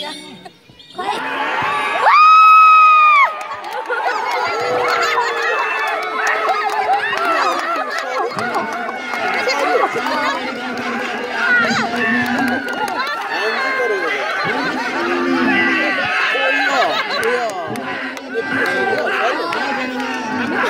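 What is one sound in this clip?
A crowd of young men cheers and yells excitedly.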